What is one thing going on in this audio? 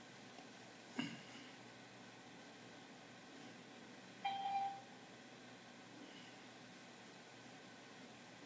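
Cloth rustles softly close by.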